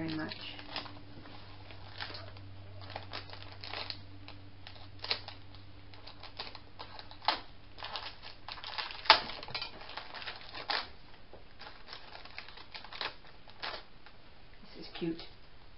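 Plastic sheets crinkle and rustle as hands handle them.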